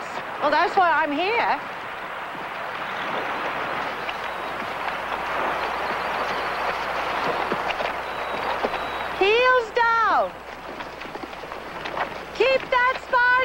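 An elderly woman calls out loudly in a high, sing-song voice nearby.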